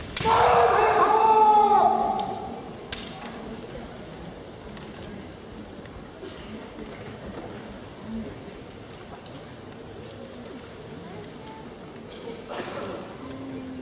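Men shout loud, drawn-out battle cries in a large echoing hall.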